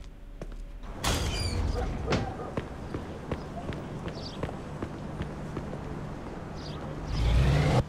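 Footsteps run on pavement outdoors.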